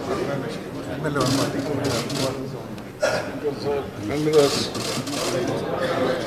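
Several men talk and call out loudly at once.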